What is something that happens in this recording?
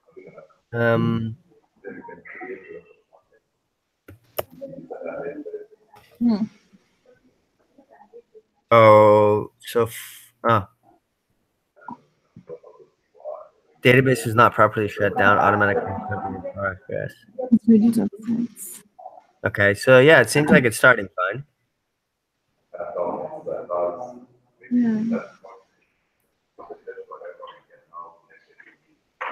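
Men talk over an online call, with animation.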